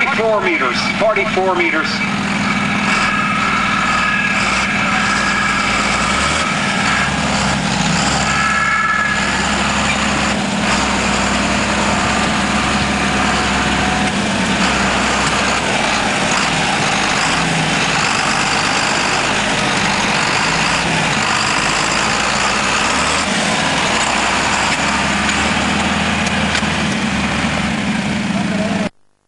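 A tractor engine roars loudly under heavy strain.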